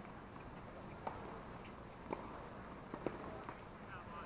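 Tennis balls are struck with rackets at a distance, with sharp pops.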